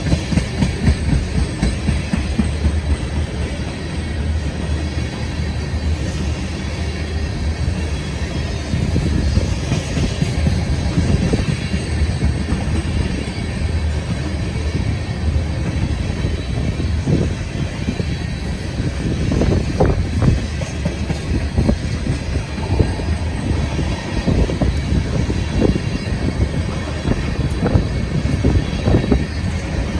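Steel wheels clack rhythmically over rail joints.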